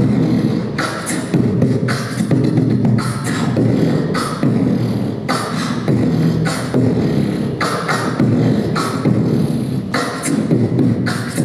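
A young man beatboxes rhythmically into a handheld microphone over loudspeakers.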